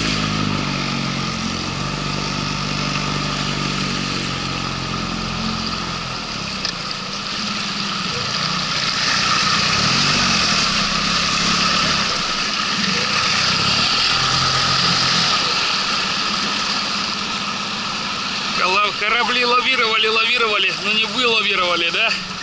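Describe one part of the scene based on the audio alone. A small outboard motor hums steadily.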